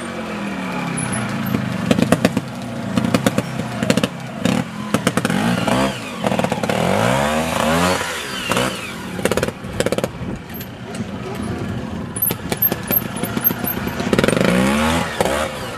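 Knobby tyres crunch and skid on loose dirt.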